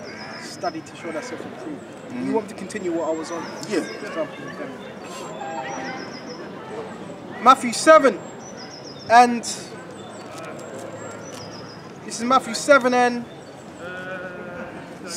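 Two men talk and call out loudly outdoors, close by.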